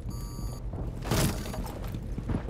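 A wooden wall splinters and bursts apart with a loud crack.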